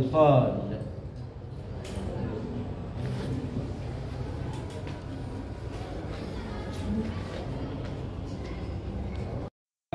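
An elderly man reads aloud into a microphone, heard through a loudspeaker in an echoing room.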